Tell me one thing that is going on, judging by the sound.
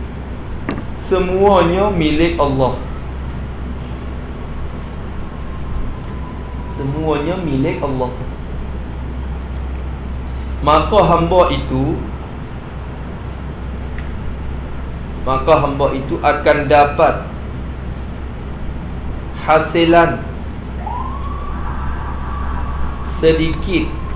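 A man speaks in short, lively bursts through a microphone, with pauses between.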